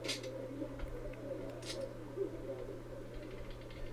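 A casino chip clicks onto a table.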